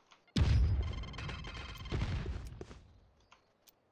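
A loud magical burst booms and rumbles, then fades.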